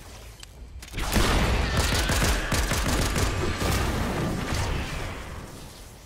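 A heavy weapon slams into the ground with a loud crashing burst.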